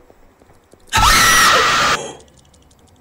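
A young woman screams loudly into a microphone.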